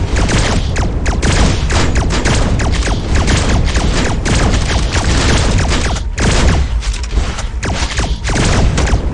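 Rapid gunfire crackles without a break.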